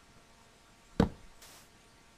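A short soft thud sounds as a block is placed.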